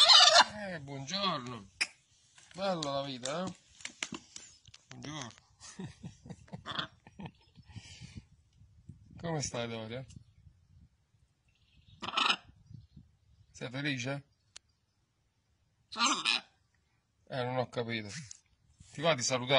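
A parrot squawks and chatters up close.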